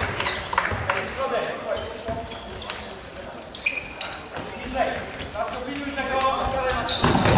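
A ball thuds as it is kicked across the court.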